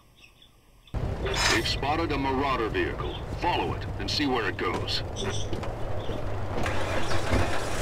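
A man talks through a headset microphone.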